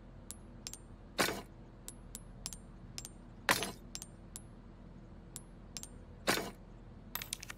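Gems snap into place with bright clinks.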